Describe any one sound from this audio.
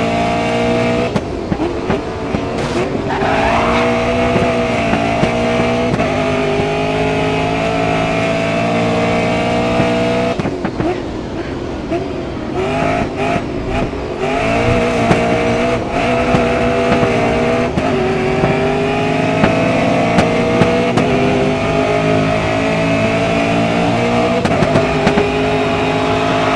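A racing car engine roars loudly, its pitch rising and dropping as it shifts gears.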